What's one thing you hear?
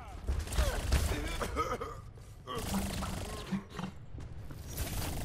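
Sci-fi game weapons and effects buzz and whoosh.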